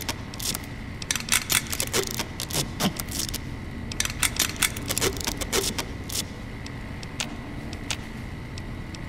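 Quick electronic clicks and beeps sound in bursts.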